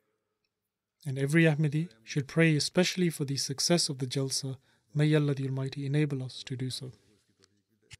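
An elderly man recites slowly into a microphone.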